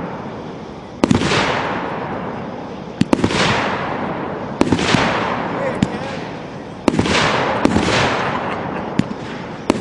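Fireworks burst with loud bangs and crackle, echoing outdoors.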